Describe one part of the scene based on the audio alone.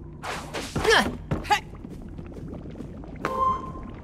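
A blast bursts with a bright zap.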